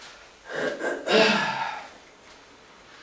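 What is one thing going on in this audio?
A wooden bench creaks as a man sits down.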